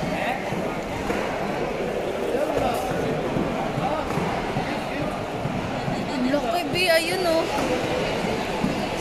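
A crowd of people chatters in a busy, echoing hall.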